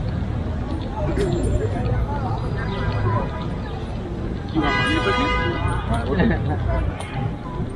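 A man talks casually close by while passing.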